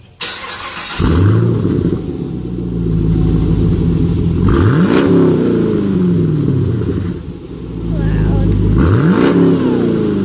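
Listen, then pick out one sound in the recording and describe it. A car engine idles with a deep, loud exhaust rumble.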